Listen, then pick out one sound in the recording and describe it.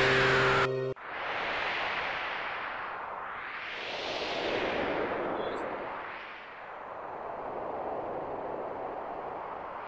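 Ocean waves wash and surge steadily.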